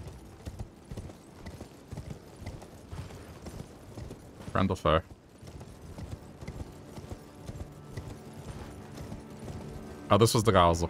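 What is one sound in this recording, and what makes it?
Horse hooves clop steadily on stone paving.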